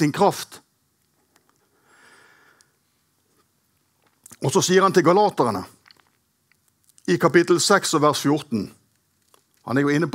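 A middle-aged man reads out calmly into a microphone, with pauses.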